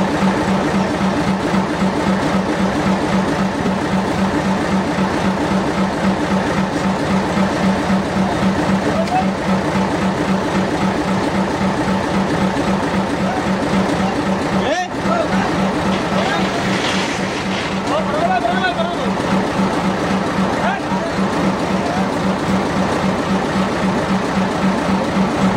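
A fishing boat's engine idles with a steady throb.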